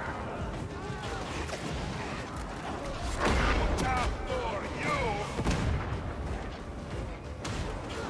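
Flames roar.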